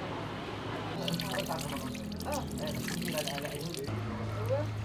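Water trickles from a tap into a stone basin.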